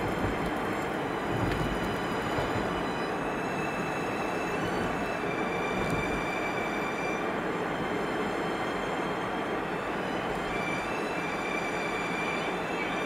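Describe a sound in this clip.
Tyres hum steadily on a paved road from inside a moving car.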